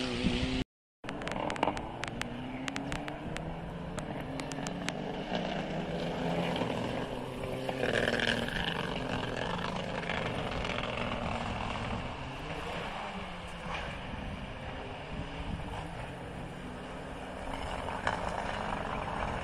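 A rally car engine revs and whines in the distance.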